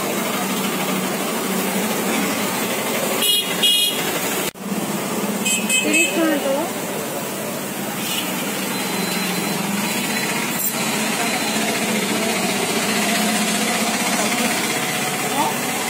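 Motorbikes and street traffic rumble nearby.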